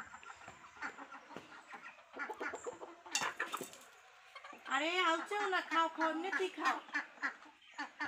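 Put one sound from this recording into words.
Chickens peck grain with quick taps.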